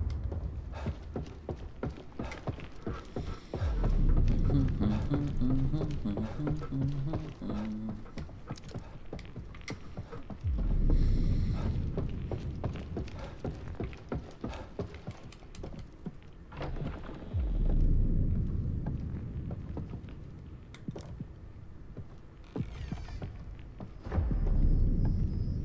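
Footsteps shuffle slowly across a hard floor.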